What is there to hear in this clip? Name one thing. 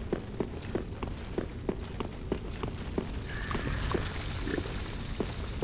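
Armoured footsteps clank quickly on a stone floor.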